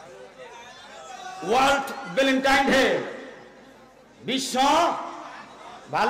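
A middle-aged man preaches loudly and with animation into a microphone, echoing through loudspeakers.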